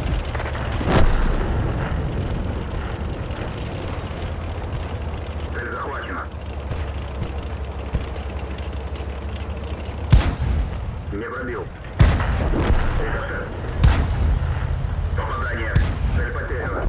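A tank gun fires with loud booms.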